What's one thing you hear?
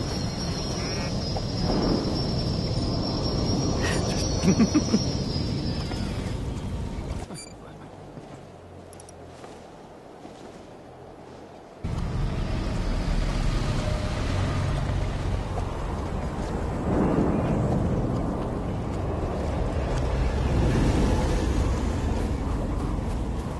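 A character's footsteps patter on sand and stone.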